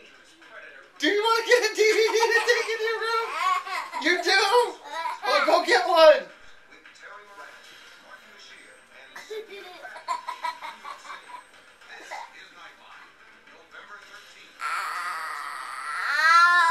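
A young child shrieks with laughter close by.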